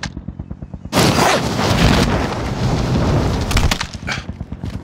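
Gunfire rattles loudly nearby.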